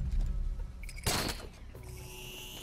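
A grappling line fires with a sharp whoosh.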